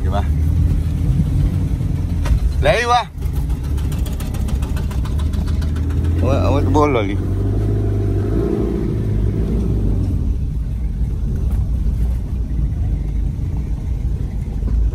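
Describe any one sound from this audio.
A car's body rattles and bumps over uneven ground.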